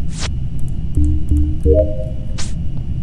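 A short electronic chime sounds as a game panel opens.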